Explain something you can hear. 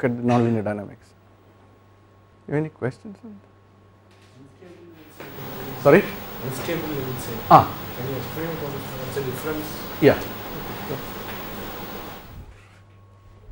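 A man speaks calmly through a clip-on microphone.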